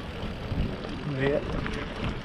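A man speaks briefly nearby outdoors.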